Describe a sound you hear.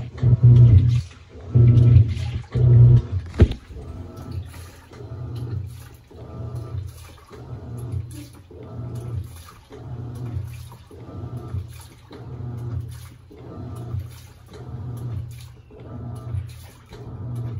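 A washing machine agitates laundry in water with a rhythmic swishing and churning.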